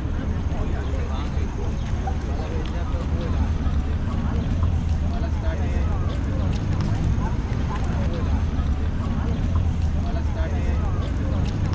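Cars pass on a city street.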